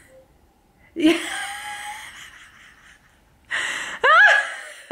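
A woman laughs loudly.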